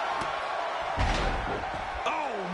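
A heavy body thuds onto a hard floor.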